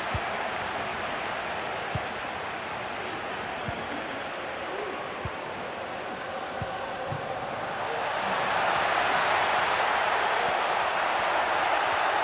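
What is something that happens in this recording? A stadium crowd roars steadily, swelling louder.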